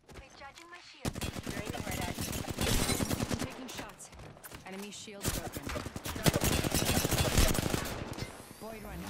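A gun fires in fast rattling bursts.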